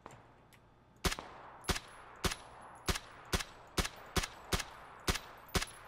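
An assault rifle fires rapid single shots in a video game.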